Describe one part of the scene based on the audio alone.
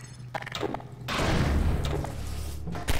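A weapon fires with a loud, crackling blast.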